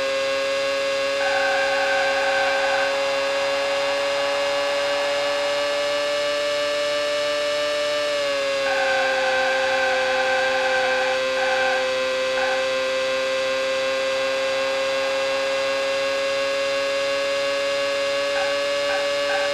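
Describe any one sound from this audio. A racing car engine whines at a high, steady pitch, dropping briefly as the car slows for a bend.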